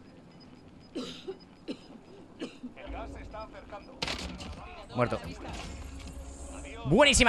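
A young man talks with rising excitement into a close microphone.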